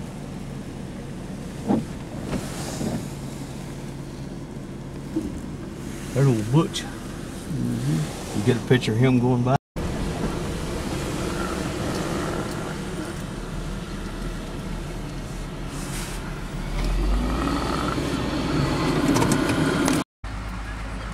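A vehicle engine idles with a steady low hum.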